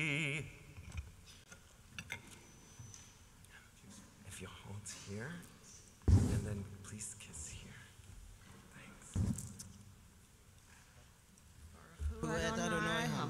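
A man chants in a singing voice through a microphone in an echoing hall.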